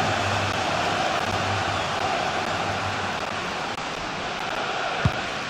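A large stadium crowd roars and murmurs steadily.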